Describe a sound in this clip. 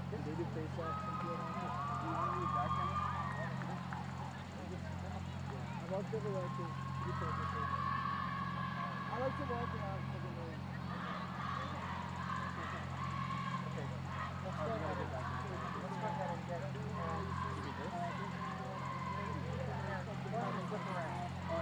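A distant crowd chatters and cheers outdoors.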